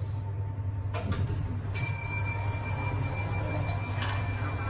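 The steel sliding doors of a lift rumble open.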